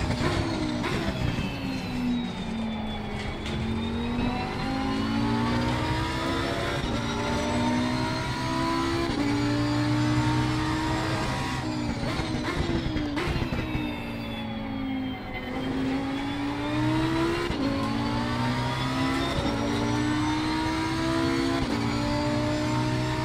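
A racing car engine roars, rising through the gears and dropping as it brakes.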